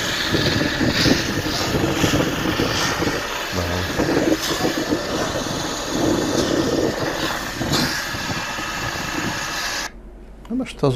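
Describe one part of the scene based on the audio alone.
Water sprays hard from a hose onto the ground outdoors.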